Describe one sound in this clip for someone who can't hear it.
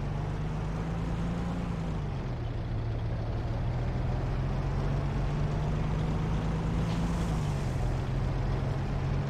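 Tank tracks clatter and squeak over the ground.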